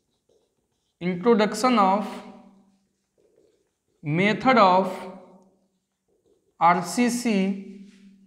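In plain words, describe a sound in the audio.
A man speaks clearly in short phrases, close by, as if teaching.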